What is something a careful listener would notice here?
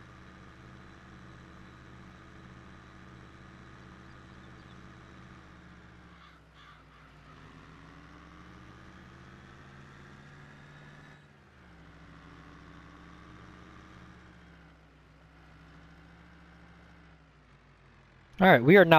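A tractor engine hums steadily, its pitch rising and falling as it drives.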